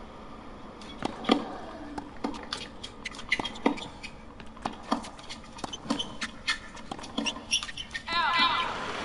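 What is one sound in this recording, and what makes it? Tennis rackets strike a ball back and forth in a rally.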